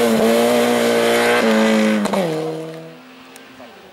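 A racing car engine roars at high revs close by and drops in pitch as it moves away.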